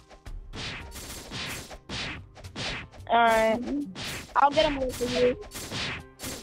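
Sword swings whoosh again and again in quick bursts.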